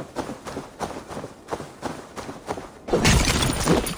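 Footsteps thud quickly through grass.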